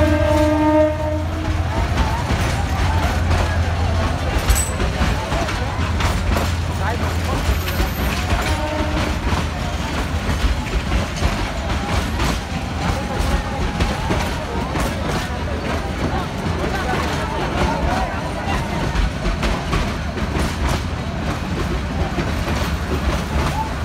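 A crowd of people on the train shouts and chatters.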